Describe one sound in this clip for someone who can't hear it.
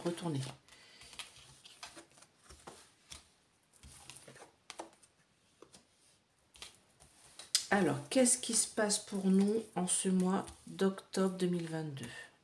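Playing cards slide and tap softly on a cloth.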